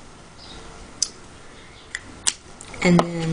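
A lipstick cap clicks open and shut.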